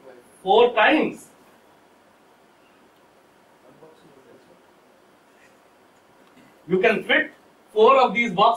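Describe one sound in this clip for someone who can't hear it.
A man speaks to an audience in short bursts with pauses.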